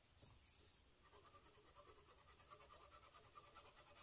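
A pen nib scratches rapidly across paper in quick strokes.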